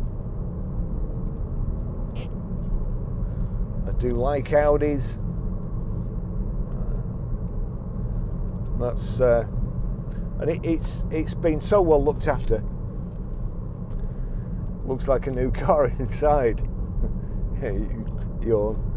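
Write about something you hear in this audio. A car engine hums steadily with road rumble inside the cabin.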